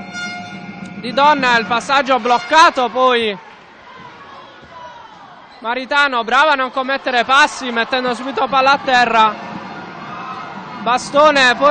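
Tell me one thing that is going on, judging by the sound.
Sneakers squeak sharply on a hardwood court in an echoing hall.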